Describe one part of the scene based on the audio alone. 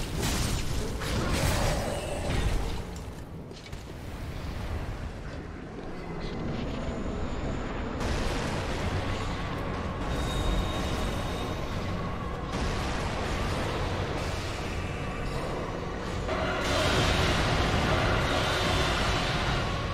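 Game magic blasts roar and crackle.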